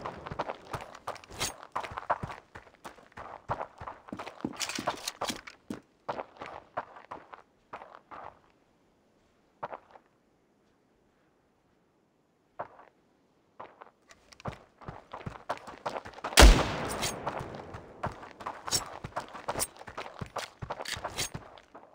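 Quick footsteps tap on hard ground.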